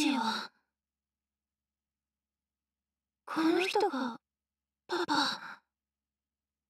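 A young woman speaks softly and hesitantly, close by.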